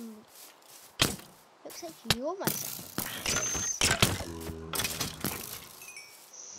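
A sword strikes a creature with repeated thuds.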